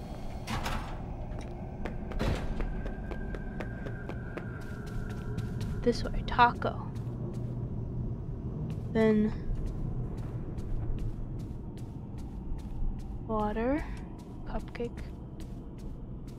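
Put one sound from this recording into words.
Footsteps pad steadily across a soft floor.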